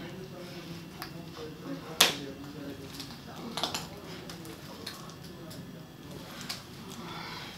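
Small metal clicks and snaps sound now and then.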